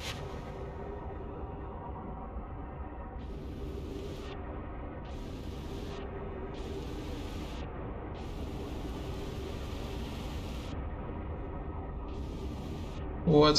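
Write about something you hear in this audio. A low engine hums steadily underwater.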